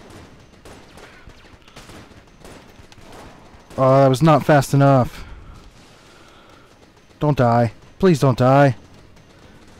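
Rapid electronic shots fire in bursts.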